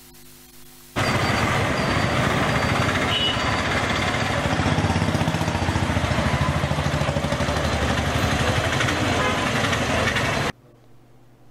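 Motorbikes and auto-rickshaws rumble past in street traffic.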